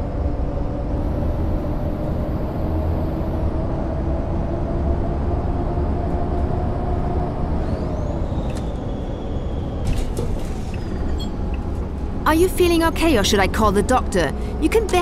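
A bus engine hums steadily as the bus drives along.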